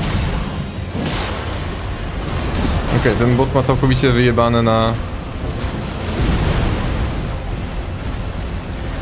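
A giant monster rumbles and thuds heavily in a fight.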